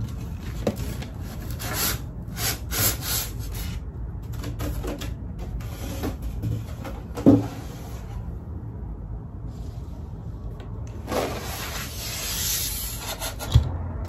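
Styrofoam packing squeaks and rubs as it is handled.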